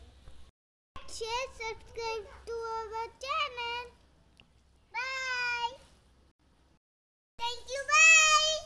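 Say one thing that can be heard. A young boy speaks loudly in a high, sing-song voice close by.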